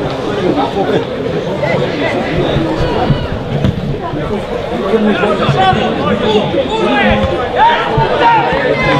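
A crowd of spectators murmurs and chatters outdoors.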